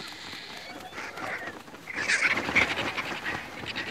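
Vultures' wings flap as the birds take off.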